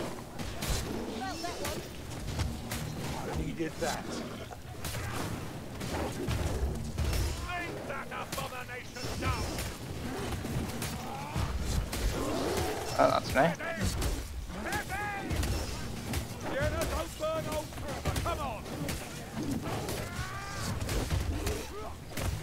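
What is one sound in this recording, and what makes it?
A large creature roars and shrieks.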